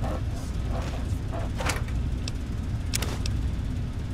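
A metal box lid clanks open.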